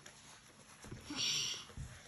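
A young boy chews food noisily.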